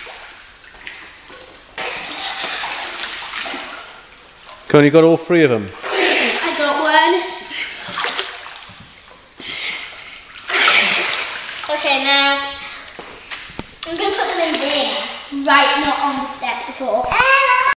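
Water splashes and sloshes in a pool.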